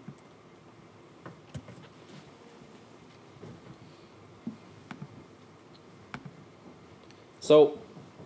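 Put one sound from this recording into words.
A man taps keys on a laptop keyboard.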